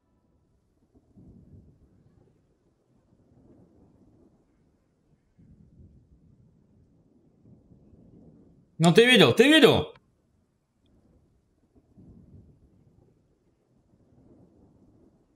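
A young man talks quietly and casually into a close microphone.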